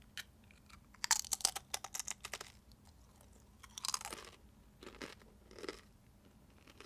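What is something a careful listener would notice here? A young woman crunches on a crisp snack.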